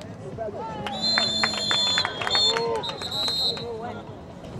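A referee blows a shrill whistle in several short blasts.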